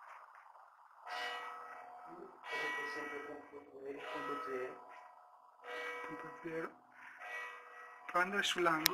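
An electronic meter gives off a steady, wavering beeping tone.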